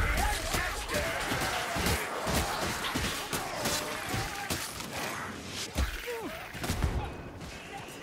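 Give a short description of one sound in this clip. Rat-like creatures screech and snarl in a fight.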